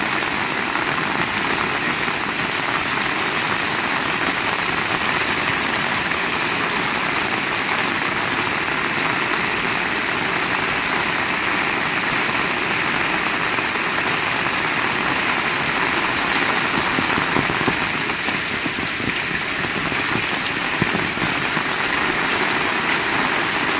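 Heavy rain falls steadily outdoors.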